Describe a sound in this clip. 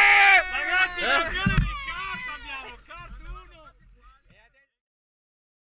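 Young men shout and cheer excitedly up close, then fade away.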